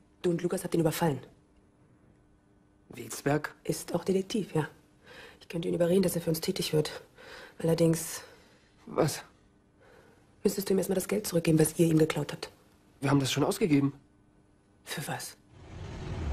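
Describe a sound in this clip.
A woman speaks softly, close by.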